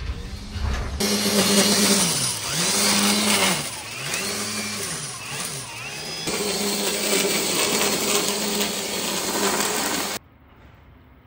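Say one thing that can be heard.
A string trimmer whines loudly, its engine rising and falling.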